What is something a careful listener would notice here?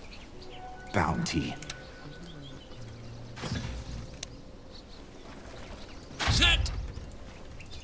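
Game spell effects whoosh and crackle in short bursts.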